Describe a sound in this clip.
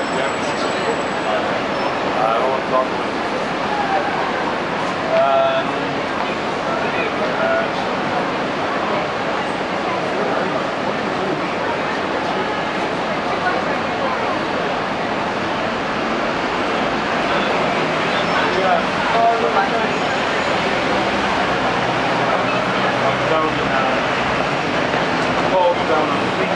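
Busy street traffic rumbles steadily outdoors.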